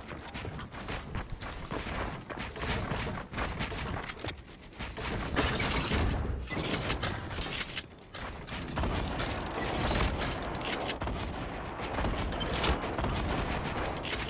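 Building pieces clack into place in quick succession.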